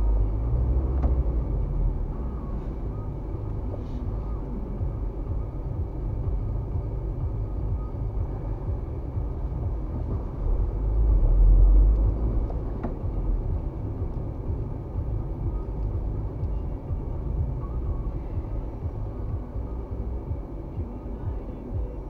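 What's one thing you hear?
A car engine hums steadily from inside the cabin as it drives along a road.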